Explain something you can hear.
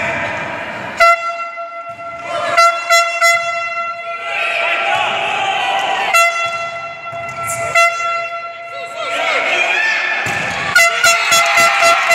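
A volleyball is struck hard with a smack in an echoing hall.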